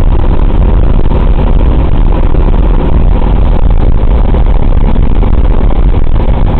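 Wind rushes past an open window of an aircraft in flight.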